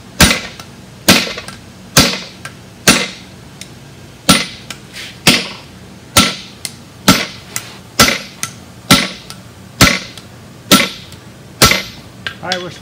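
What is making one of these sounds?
A hammer rings as it strikes hot metal on an anvil in a steady rhythm.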